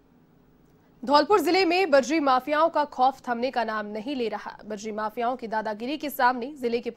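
A woman reads out the news calmly and clearly into a microphone.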